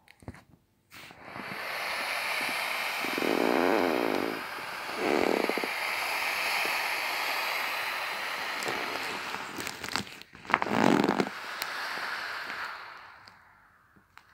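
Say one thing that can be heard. Thin plastic crinkles and rustles under a squeezing hand.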